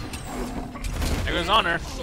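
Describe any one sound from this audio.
Magic blasts and weapon hits crackle in a video game fight.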